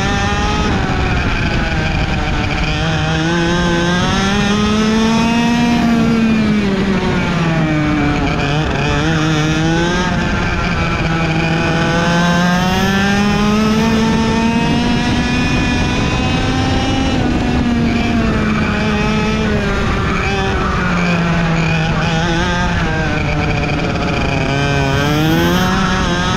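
A small kart engine whines loudly and close, rising and falling in pitch as it speeds up and slows through the bends.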